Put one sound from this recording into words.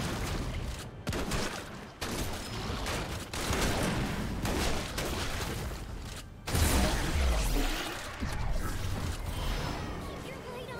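Game weapons and spells crash and whoosh in a fast fight.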